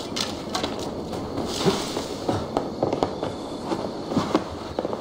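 Hands and boots knock against wooden logs while climbing.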